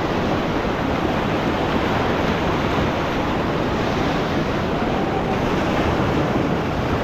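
White-water rapids rush and roar loudly close by.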